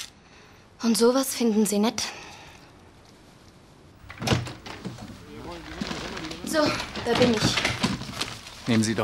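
A young woman speaks calmly close by.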